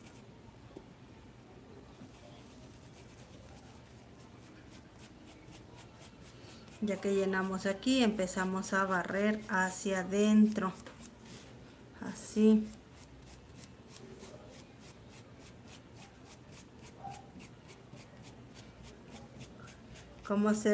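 A paintbrush dabs softly on fabric.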